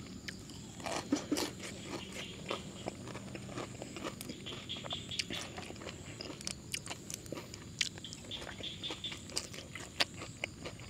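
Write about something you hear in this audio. A man chews and smacks his lips loudly up close.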